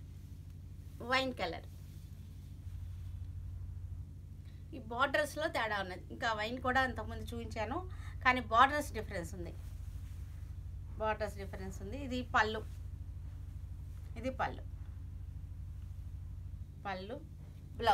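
A middle-aged woman speaks calmly and close by, in short bursts.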